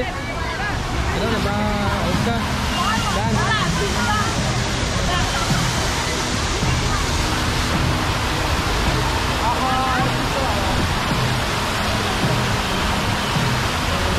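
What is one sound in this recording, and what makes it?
A fountain's jets of water splash and hiss steadily.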